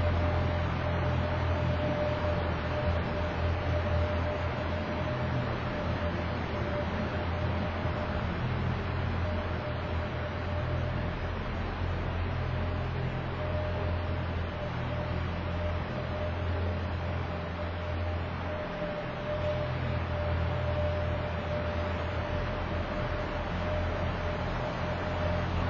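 An ice resurfacing machine's engine hums steadily in a large echoing hall.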